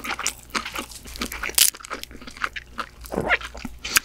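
Crab shell cracks and crunches close to a microphone.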